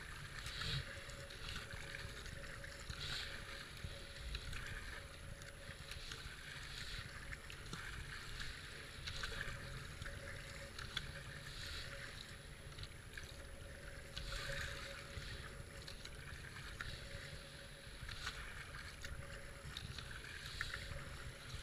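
Fast flowing water rushes and gurgles around a kayak.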